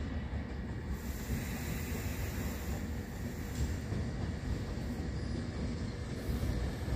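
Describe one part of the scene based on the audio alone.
A train approaches along the tracks with a low rumble.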